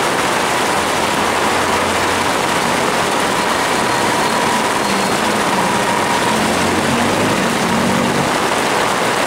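A motorcycle engine hums as a motor tricycle passes through the rain.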